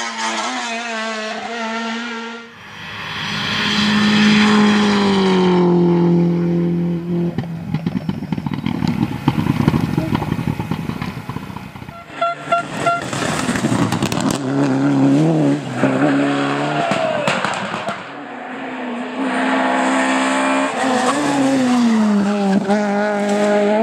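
Rally cars race past one after another at full throttle, engines revving hard through the gears.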